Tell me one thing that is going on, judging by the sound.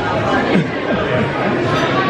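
A young girl laughs up close.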